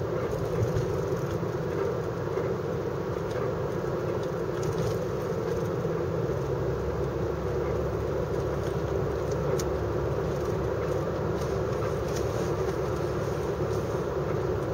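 A car drives on an asphalt road, heard from inside, with a steady engine and road rumble.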